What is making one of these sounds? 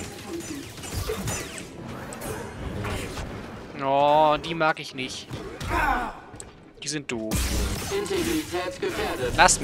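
Lightsaber blades hum and clash.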